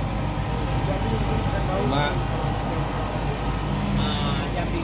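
Several men talk casually nearby.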